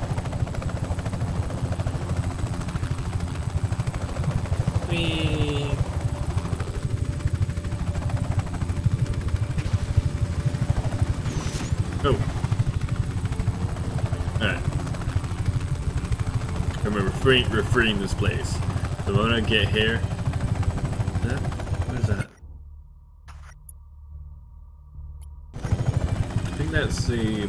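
A helicopter's rotor thumps and drones steadily.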